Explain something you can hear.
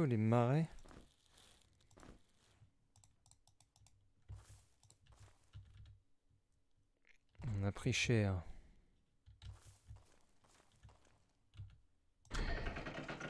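Footsteps thud softly on the ground.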